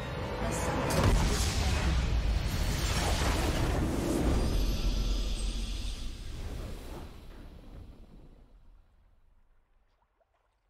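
A triumphant victory fanfare swells and then fades away.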